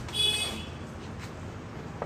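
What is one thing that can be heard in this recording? Switches click on a motorbike handlebar.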